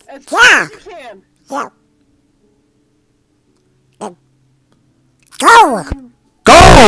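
A man speaks in short bursts in a squawky, high-pitched cartoon voice, close to the microphone.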